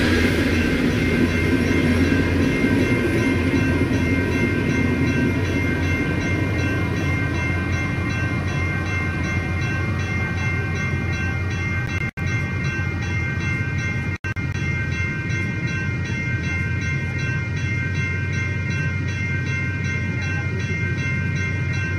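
A diesel locomotive engine drones steadily as it approaches.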